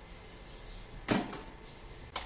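A metal utensil clinks against a pot.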